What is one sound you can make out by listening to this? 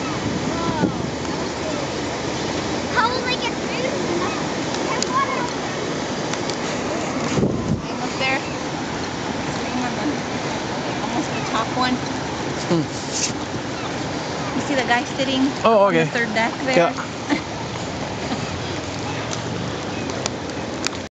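Water laps and splashes.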